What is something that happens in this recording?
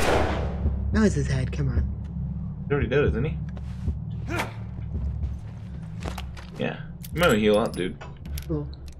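A man speaks tensely close by.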